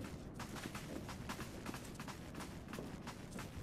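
Footsteps patter quickly up stone steps.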